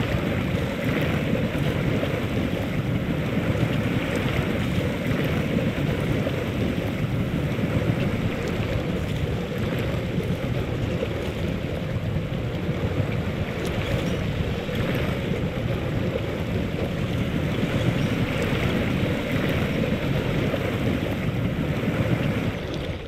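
A van engine rumbles steadily as it drives.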